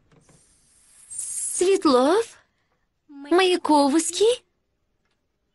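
A young girl speaks in answer, close by.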